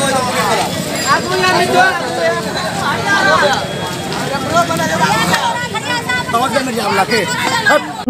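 A crowd of men and women shouts and chants outdoors.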